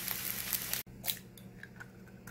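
An egg cracks against the edge of a pan.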